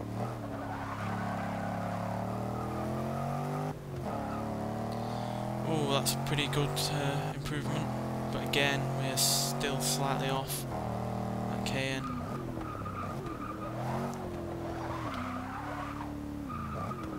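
A car engine roars, revving up through the gears and dropping in pitch at each gear change.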